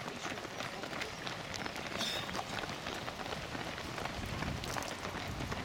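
Many running shoes patter on pavement.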